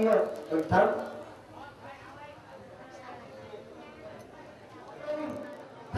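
An elderly man speaks formally into a microphone through a loudspeaker.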